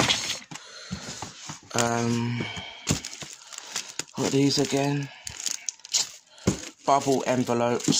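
Plastic packets crinkle and rustle as a hand flips through them.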